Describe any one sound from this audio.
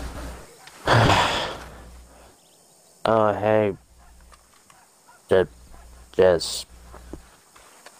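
A man's boots thud slowly on dry dirt.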